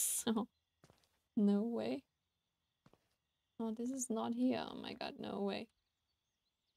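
A young woman talks calmly into a close microphone.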